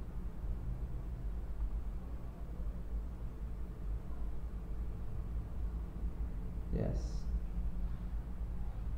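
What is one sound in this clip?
A young man speaks calmly close to a microphone.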